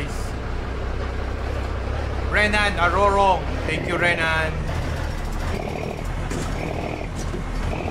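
A truck engine rumbles low and steady.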